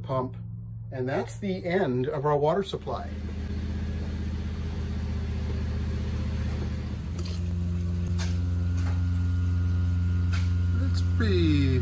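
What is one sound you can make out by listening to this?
A 12-volt diaphragm water pump runs with a steady hum.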